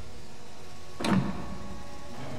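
A heavy stone button clunks as it is pressed in.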